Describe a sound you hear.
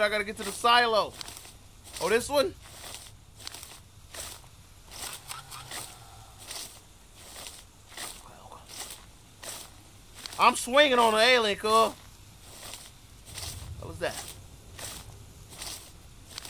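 Tall dry stalks rustle as someone pushes through them.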